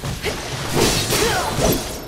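Blades clash and swish in rapid strikes.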